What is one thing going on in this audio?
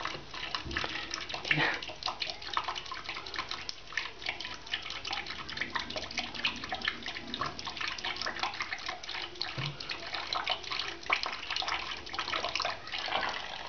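Soap foam fizzes and crackles softly in a sink.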